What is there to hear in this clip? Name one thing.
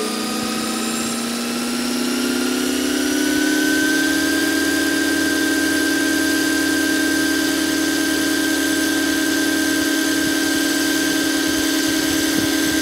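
Helicopter rotor blades thump as they spin up.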